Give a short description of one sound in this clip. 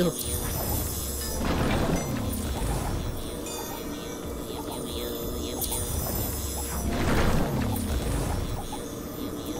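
Electronic game sound effects whoosh and sweep down in pitch.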